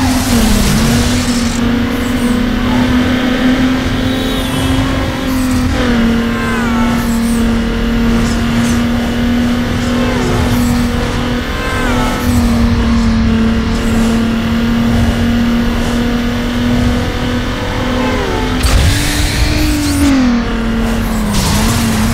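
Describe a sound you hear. A racing car engine roars at high revs, briefly dropping in pitch at each gear change.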